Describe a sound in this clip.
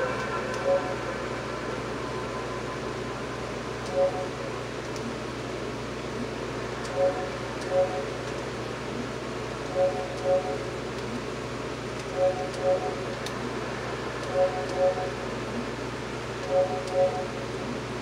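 Short electronic menu beeps chime, often in quick pairs.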